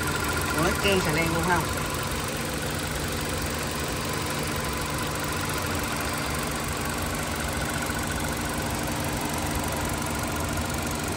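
A car engine idles with a steady hum.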